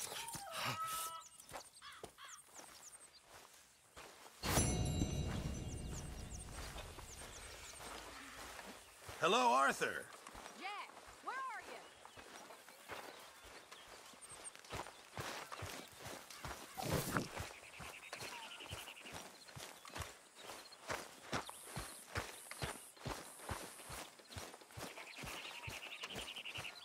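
Footsteps tread steadily on grass.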